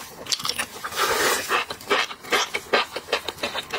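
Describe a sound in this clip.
A young man slurps noodles loudly close to a microphone.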